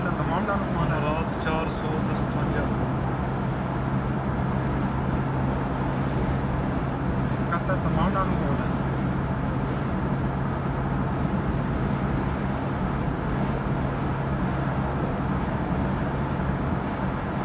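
Tyres roll with a steady rumble on the road.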